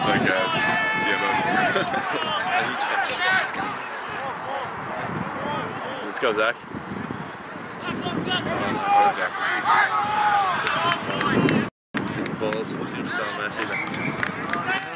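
Young men shout and call out to each other outdoors across a playing field.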